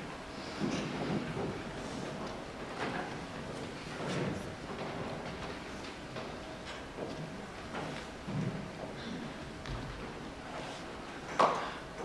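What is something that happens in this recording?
Actors speak quietly on a stage in a large hall.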